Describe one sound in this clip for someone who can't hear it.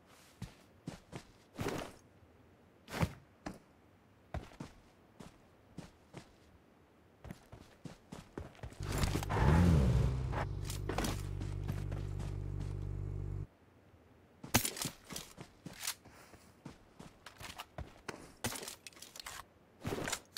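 Footsteps crunch on grass.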